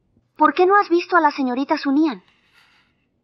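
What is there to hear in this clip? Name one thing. A young woman asks a question in a clear, calm voice.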